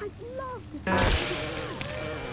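An alarm sounds suddenly and loudly.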